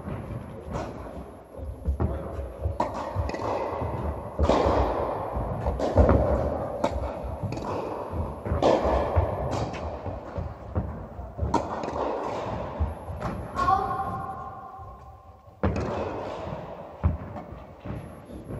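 Tennis balls are struck with a racket, with sharp pops echoing in a large hall.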